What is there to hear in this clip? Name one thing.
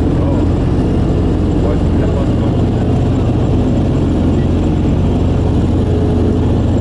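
Propeller engines drone loudly and steadily close by.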